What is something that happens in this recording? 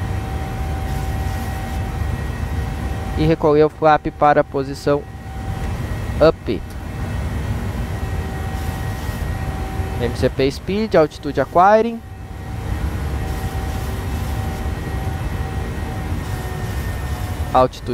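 A jet airliner's engines drone steadily from inside the cockpit.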